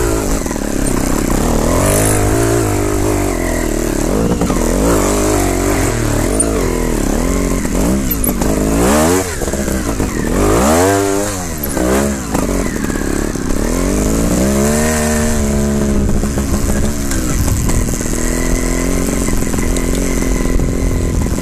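A motorbike engine revs up and down, close by.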